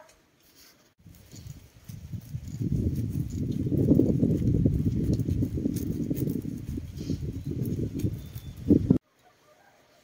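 Dry corn kernels rattle and patter as they are rubbed off a cob into a basket.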